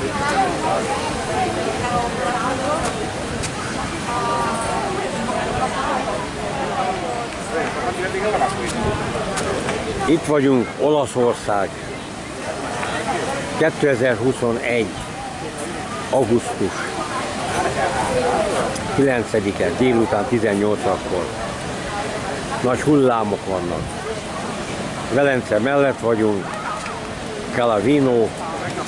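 Waves break gently on a shore in the distance.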